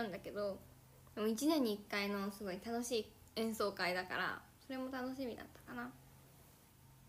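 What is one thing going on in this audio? A young woman talks casually close to a phone microphone.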